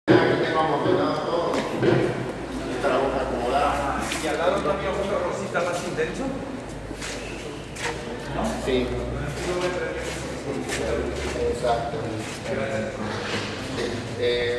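A man talks calmly nearby in an echoing hall.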